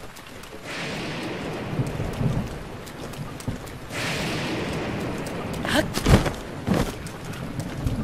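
Thunder cracks and rumbles.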